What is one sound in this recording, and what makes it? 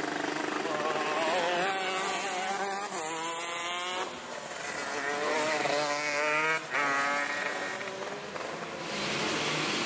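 A go-kart engine whines past at speed.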